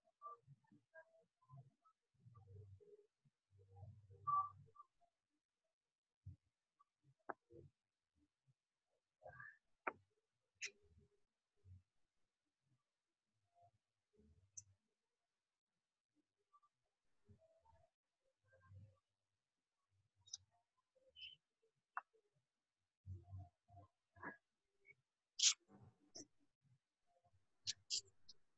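A young woman speaks in short, halting bursts over an online call.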